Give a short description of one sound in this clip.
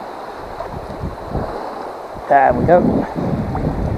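A fish splashes in the water.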